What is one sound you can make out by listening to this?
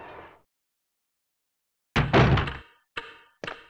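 A heavy wooden door swings open with a thud.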